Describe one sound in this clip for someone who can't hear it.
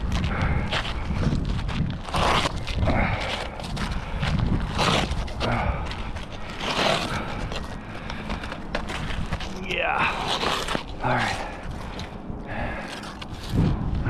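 A utility knife scrapes and slices through roof shingles.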